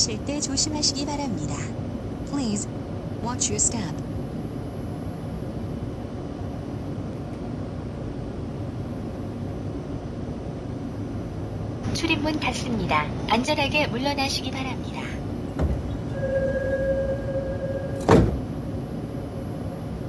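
A low rumble hums steadily inside a train car.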